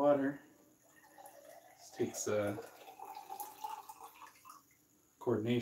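Water pours into a glass, rising in pitch as it fills.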